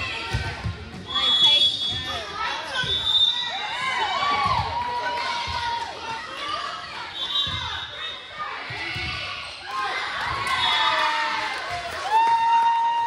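A volleyball is struck with loud slaps.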